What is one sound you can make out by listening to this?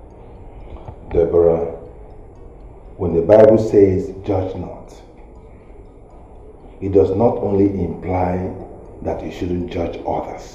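A middle-aged man speaks firmly and with emphasis, close by.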